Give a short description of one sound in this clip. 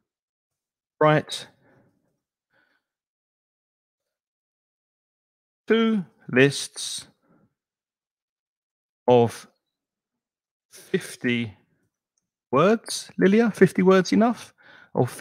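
An older man speaks calmly into a microphone, in short bursts with pauses.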